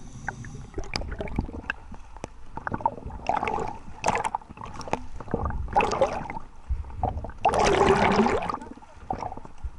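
Waves slap and splash against a boat's hull, close by.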